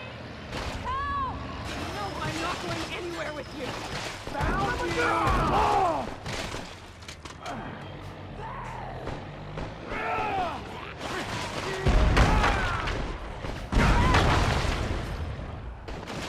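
Heavy thuds sound as a van slams into bodies.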